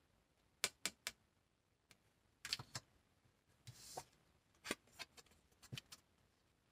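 Cards slap and flick softly as they are shuffled.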